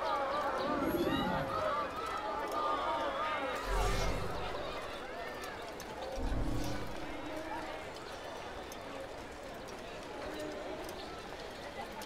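Footsteps patter on stone paving.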